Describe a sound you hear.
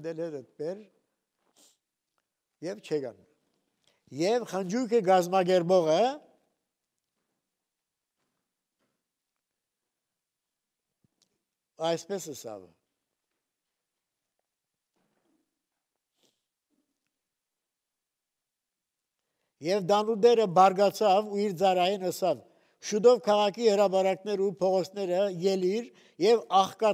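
An elderly man speaks with emphasis through a microphone, pausing often.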